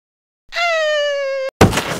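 A spiked ball strikes with a sharp thud.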